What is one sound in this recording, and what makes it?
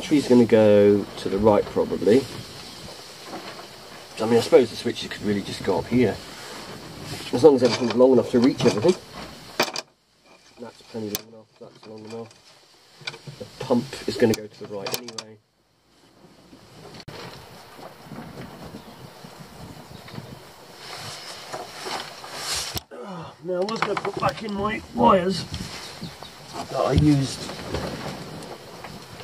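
A man talks calmly close by, in short bursts with pauses.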